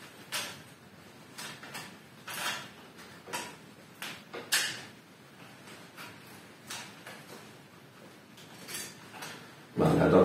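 Small clicks of wire being bent and snipped come now and then.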